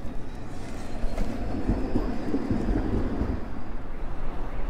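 A tram rumbles past.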